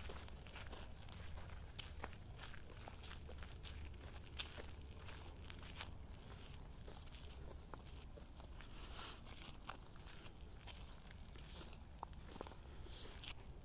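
Footsteps crunch over dry grass and gravel.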